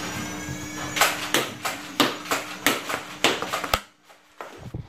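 A toy blaster clicks and fires several quick shots.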